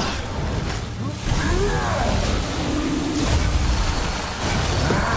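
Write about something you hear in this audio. Spell effects crackle and burst in a fantasy battle.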